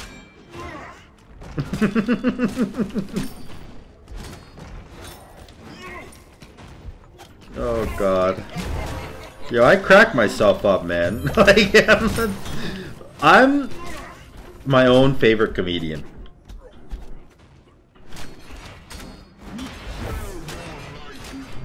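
Game combat effects clash and whoosh.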